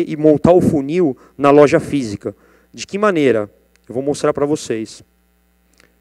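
A young man speaks calmly into a microphone over loudspeakers.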